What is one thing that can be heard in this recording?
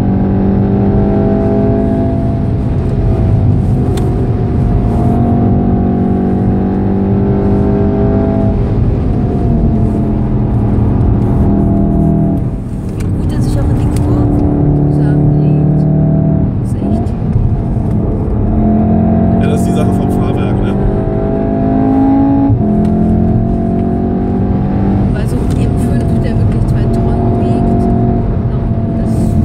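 Tyres hum and rumble on the road.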